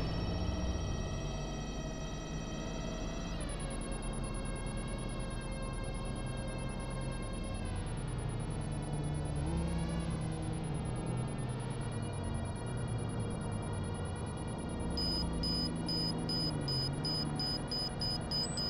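A small drone's motor whines steadily, its pitch dipping and rising.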